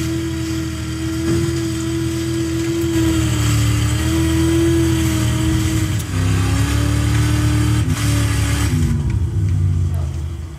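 A motorboat engine drones through loudspeakers, rising and falling in pitch.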